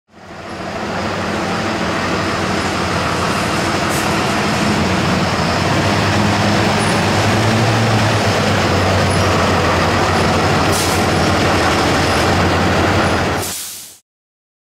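A truck engine rumbles as the truck rolls slowly closer.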